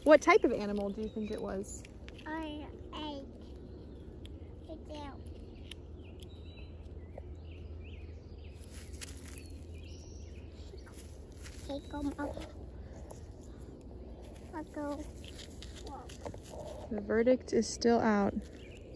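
A young child talks softly close by.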